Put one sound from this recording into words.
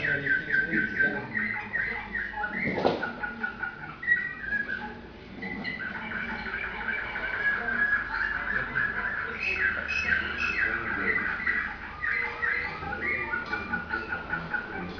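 Songbirds sing in rapid warbling trills, heard through a television speaker.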